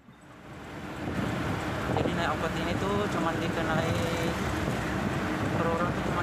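A man speaks close by in a calm voice.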